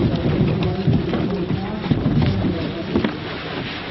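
A plastic kayak scrapes and bumps along rough ground.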